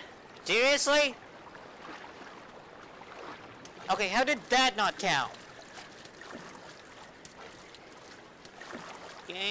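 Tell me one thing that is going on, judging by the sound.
Water splashes as a swimmer paddles through it.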